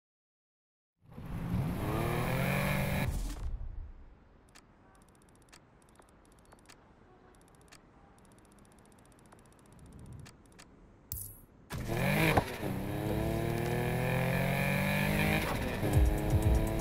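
A car engine revs and roars as it accelerates.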